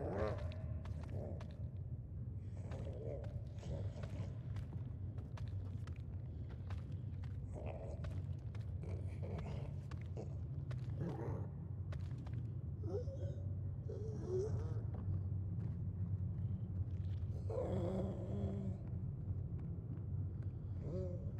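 A deep, steady rumbling drone hums throughout.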